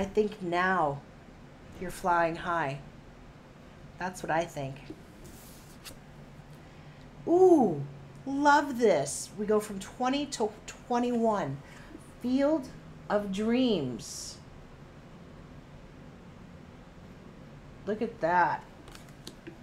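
A middle-aged woman speaks calmly and expressively close to a microphone.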